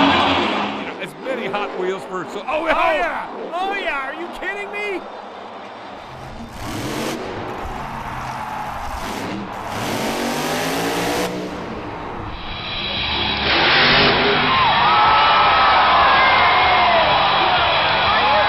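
A monster truck engine roars and revs.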